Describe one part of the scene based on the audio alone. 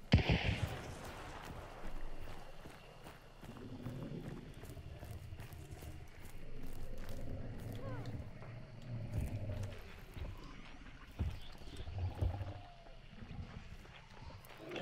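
Footsteps crunch slowly over dry ground and undergrowth.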